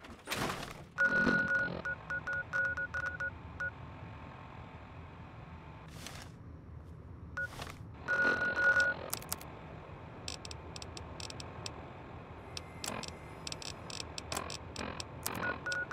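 An electronic device beeps and clicks as its menu is flipped through.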